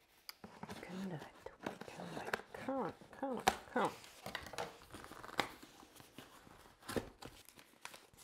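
Packing tape rips and peels off a cardboard box.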